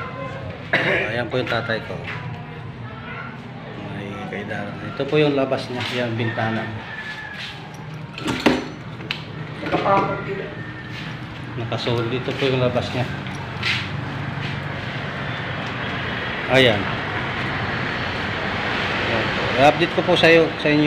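A man talks nearby, close to the microphone.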